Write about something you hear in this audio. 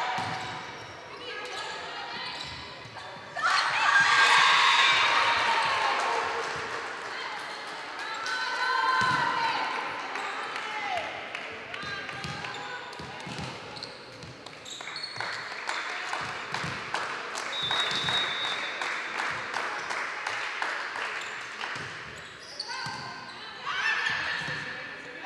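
Shoes squeak on a hard court in a large echoing hall.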